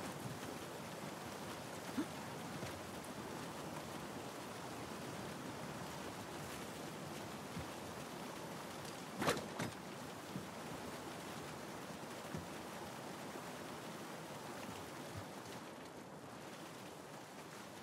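Footsteps thud on the ground.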